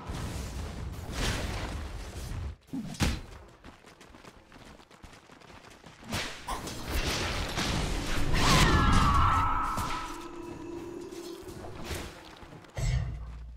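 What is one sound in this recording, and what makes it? Game spells blast and crackle in a fantasy battle.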